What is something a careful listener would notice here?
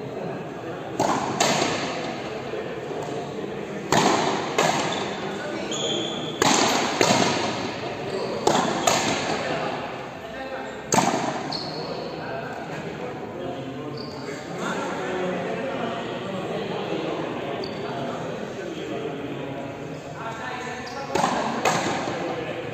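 Rackets strike a ball with sharp cracks that echo around a large indoor court.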